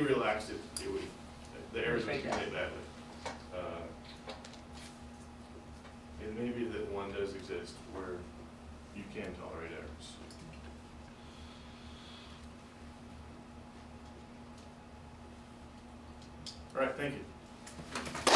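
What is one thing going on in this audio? A man speaks calmly to an audience in a room, pausing often.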